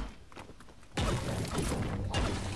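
A pickaxe strikes rock with sharp knocks.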